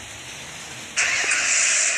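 A car engine starts up and roars loudly.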